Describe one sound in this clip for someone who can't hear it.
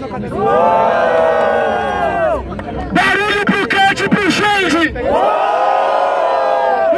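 A crowd of young people shouts and cheers together outdoors.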